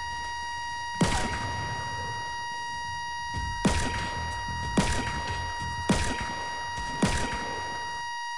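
Gunshots crack several times in quick succession.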